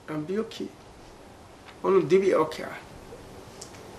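An older man speaks with animation close to a microphone.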